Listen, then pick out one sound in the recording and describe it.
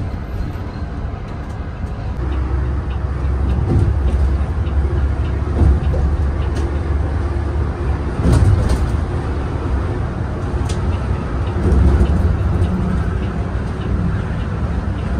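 A bus engine rumbles steadily from inside the cabin.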